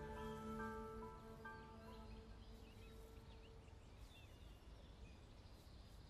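A soft brush strokes lightly over a delicate flower.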